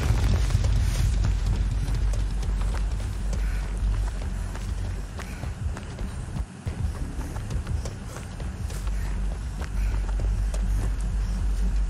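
Footsteps crunch over dry leaves and grass.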